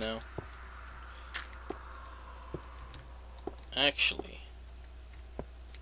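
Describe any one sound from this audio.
Footsteps tap on stone at a steady walking pace.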